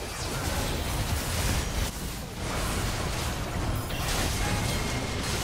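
Heavy impacts thud and crash repeatedly.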